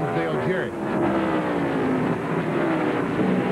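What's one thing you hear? Another race car engine drones past close by.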